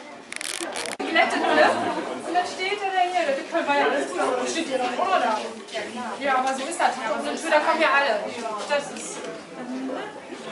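A crowd of adult men and women chat with one another indoors.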